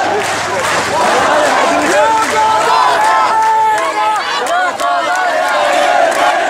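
Young men shout close by with excitement.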